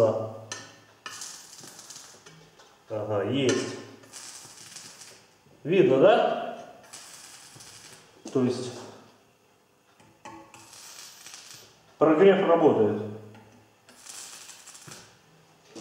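A welding arc crackles and sizzles in short bursts.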